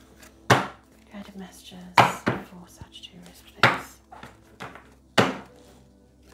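Cards slap and snap sharply as they are shuffled by hand.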